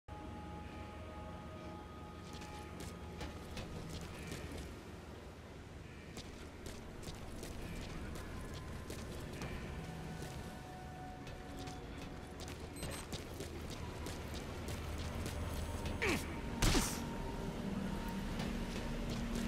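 Quick footsteps tap and shuffle on a hard metal deck.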